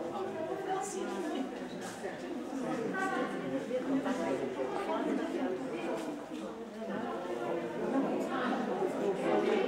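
An elderly woman talks calmly nearby.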